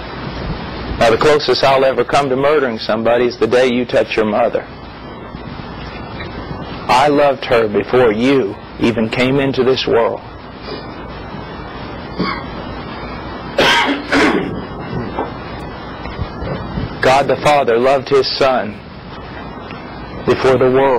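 A middle-aged man speaks calmly into a clip-on microphone, in bursts with pauses.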